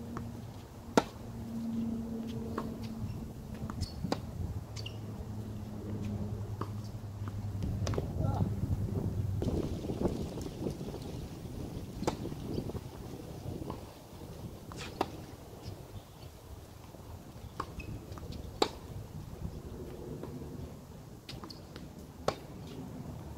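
Tennis balls are struck with racquets, popping outdoors.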